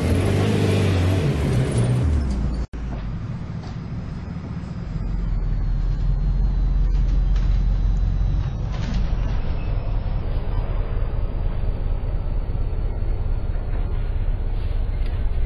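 A bus engine roars steadily at speed.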